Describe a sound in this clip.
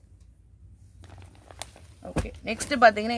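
Folded fabric rustles as hands handle it.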